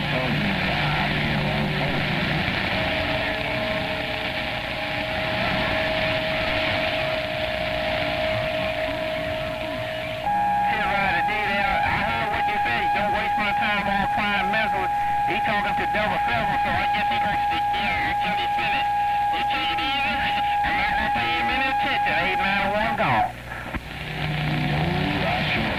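A radio receiver hisses with static.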